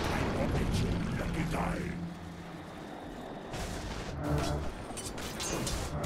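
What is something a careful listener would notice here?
Game weapons clash and thud.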